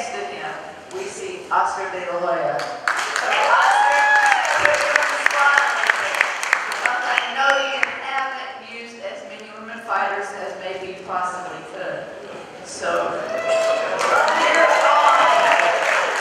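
A woman speaks with animation into a microphone over loudspeakers in a large echoing hall.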